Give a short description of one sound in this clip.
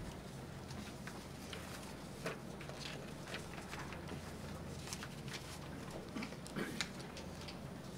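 Paper sheets rustle as pages are turned.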